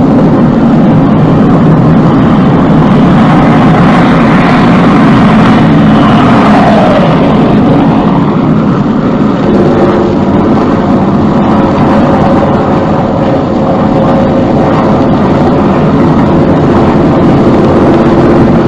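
Propeller planes drone steadily overhead.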